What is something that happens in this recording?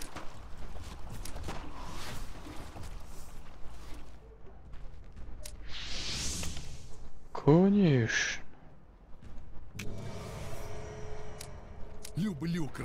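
Magic spells whoosh and crackle in a game.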